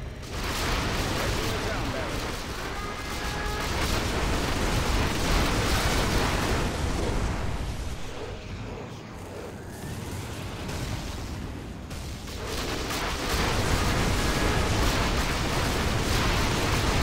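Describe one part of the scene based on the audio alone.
Laser weapons zap and crackle.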